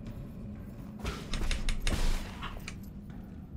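A sword swishes and strikes in a video game.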